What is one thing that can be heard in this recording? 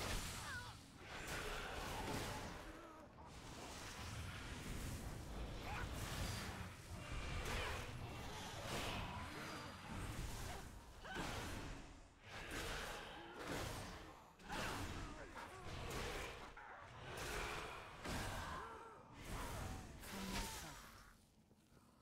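Magic spells burst and crackle during a fantasy battle.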